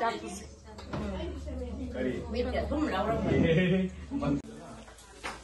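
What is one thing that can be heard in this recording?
Two women talk together nearby with animation.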